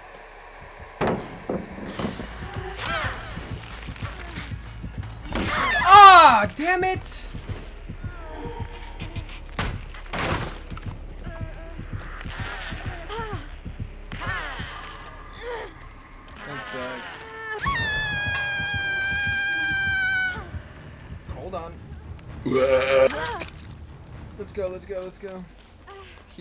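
A young man talks and shouts with excitement into a close microphone.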